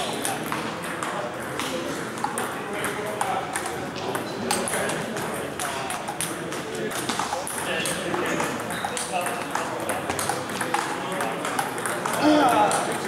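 A crowd of people talks in the background.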